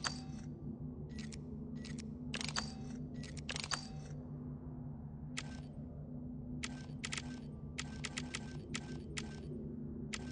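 Short soft interface clicks and chimes sound again and again as options are switched.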